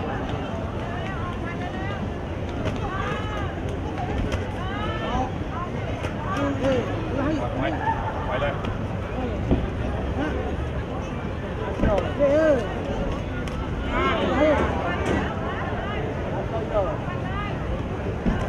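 A crowd cheers and shouts throughout a large arena.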